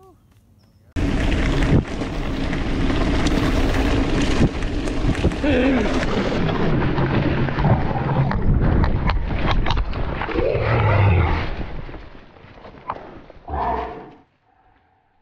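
A mountain bike rattles and rumbles over a bumpy dirt trail.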